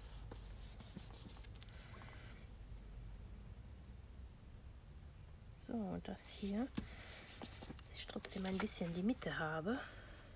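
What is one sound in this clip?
Paper rustles and slides as hands move it about.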